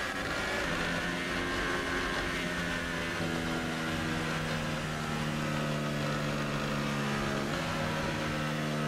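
A racing car engine whines at high revs, shifting gears as it speeds along.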